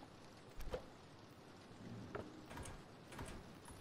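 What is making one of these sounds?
A wooden drawer slides open with a knock.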